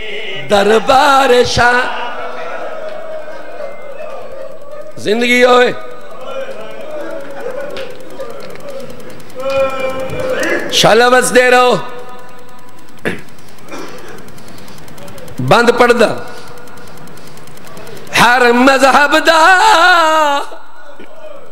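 A man recites in a loud, chanting voice through a microphone, in bursts with pauses, heard over a loudspeaker.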